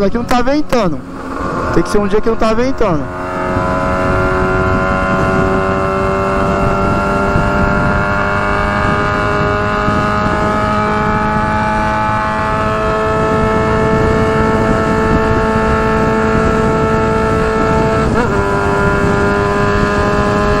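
A motorcycle engine revs up through the gears, then hums steadily at speed.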